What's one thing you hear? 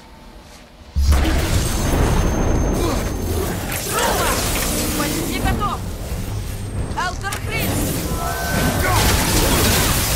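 A warrior fights a monster with heavy crashing blows.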